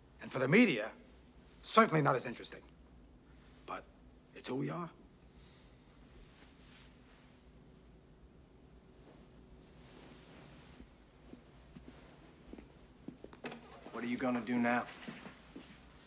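A middle-aged man speaks tensely, close by.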